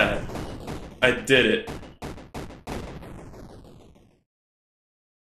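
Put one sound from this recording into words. A large game creature bursts apart with a series of loud crashing blasts that fade away.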